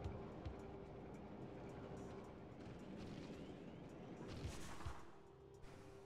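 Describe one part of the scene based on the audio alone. A metal ball rolls and rumbles along a stone floor.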